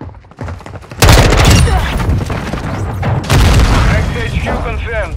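Rapid gunfire bursts loudly and echoes.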